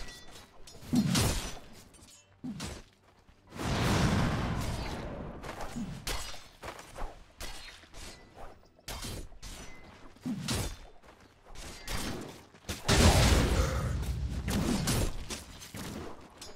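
Fantasy battle sounds of spells bursting and weapons striking come in loud bursts.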